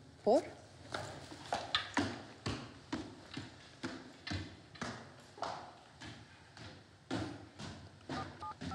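High heels click up stone stairs.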